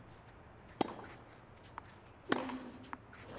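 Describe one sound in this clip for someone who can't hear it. A tennis ball is struck sharply with a racket.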